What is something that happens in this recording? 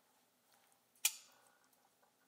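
A flipper folding knife's blade snaps open with a sharp metallic click.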